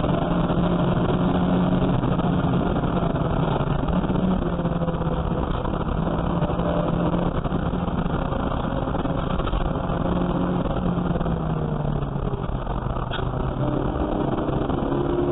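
Wind and road noise rumble steadily around the car.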